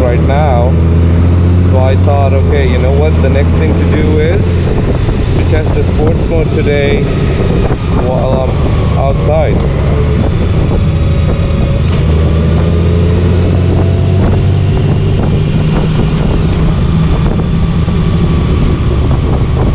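Wind rushes past a motorcycle rider.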